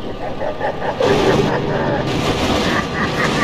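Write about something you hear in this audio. A heavy train crashes into a truck with a loud metallic bang.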